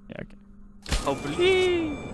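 A button clicks once.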